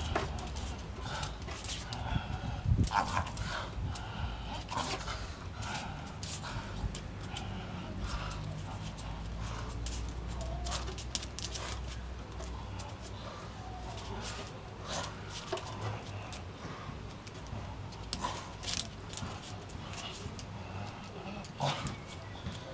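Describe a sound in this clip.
A dog growls.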